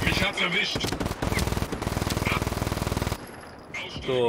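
Rapid gunfire crackles and pops.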